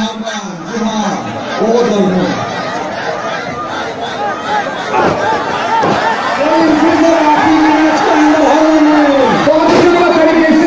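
A crowd cheers and chants loudly in a large echoing hall.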